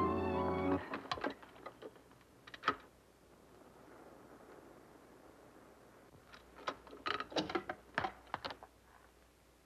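A record player's arm and a record click and clatter as they are handled.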